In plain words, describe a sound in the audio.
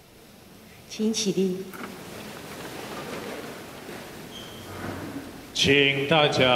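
A congregation rises from wooden pews with shuffling and creaking in a large echoing hall.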